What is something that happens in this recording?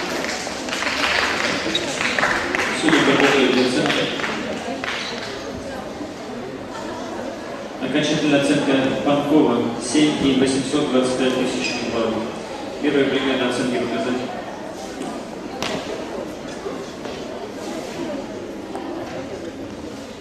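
Feet stamp and thud on a mat in a large echoing hall.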